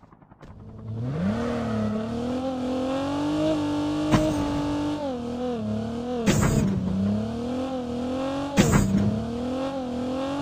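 A game car's engine revs and drones as it drives.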